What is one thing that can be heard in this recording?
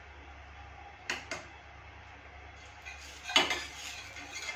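A metal spatula clinks and scrapes against a pan.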